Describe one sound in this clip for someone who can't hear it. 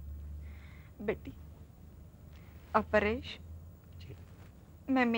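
A woman speaks calmly in short phrases nearby.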